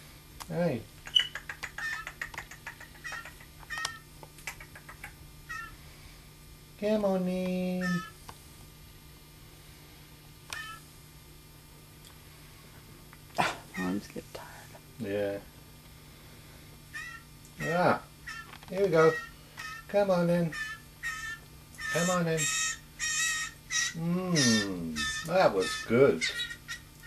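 A man makes squeaky, gliding chirping calls close by.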